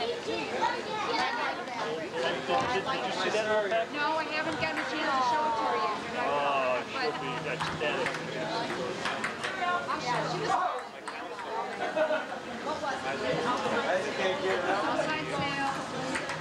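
Several adults chat and laugh together outdoors.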